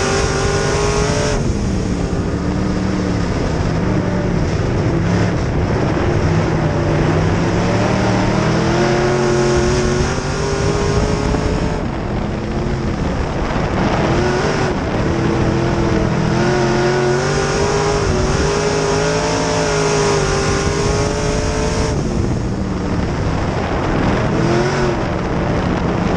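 A race car engine roars loudly, revving up and down.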